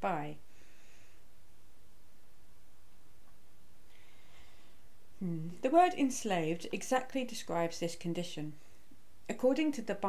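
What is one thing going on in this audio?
A middle-aged woman speaks calmly and close to the microphone, with pauses.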